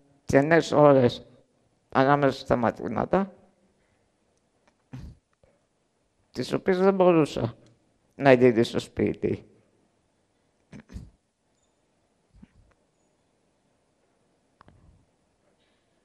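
A young man speaks slowly through a microphone, pausing between phrases.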